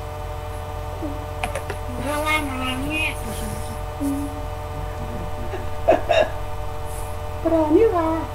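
A young man talks casually over an online call.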